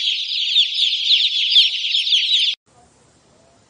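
Many chicks cheep busily.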